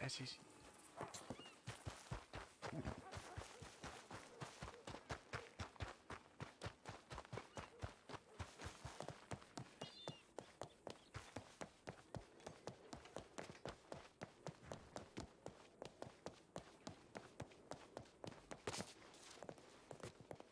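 Footsteps run quickly over dirt and wooden boards.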